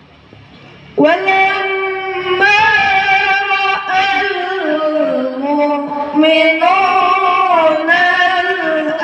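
A boy chants loudly through a microphone in a reverberant space.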